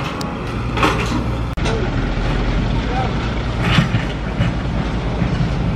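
Rocks clatter and scrape as an excavator bucket digs into a rock pile.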